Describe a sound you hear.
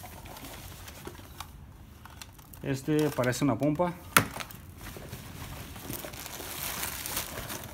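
Fabric and plastic rustle as hands rummage through a pile of things.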